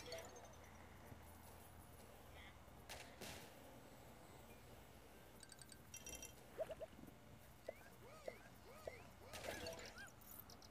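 Cartoonish game sound effects zap, pop and chirp in short bursts.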